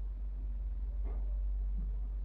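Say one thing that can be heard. A small glass bowl is set down on a hard surface.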